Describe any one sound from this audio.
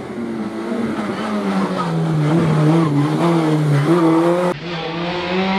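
A rally car engine revs hard, rising and falling in pitch as it races past.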